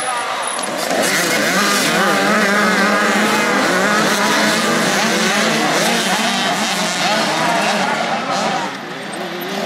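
Several motocross bike engines roar and rev together.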